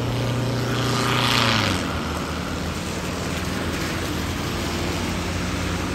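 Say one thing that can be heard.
Car tyres hiss on a wet road.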